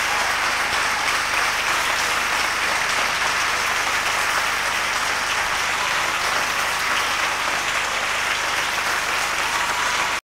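A large crowd applauds loudly and steadily in a big hall.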